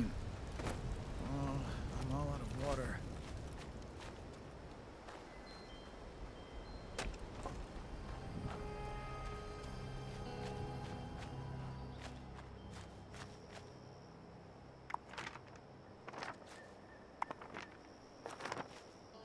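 Footsteps crunch on dry ground and gravel.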